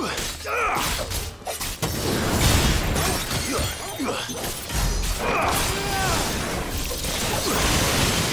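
Sword strikes clash and thud against a large creature.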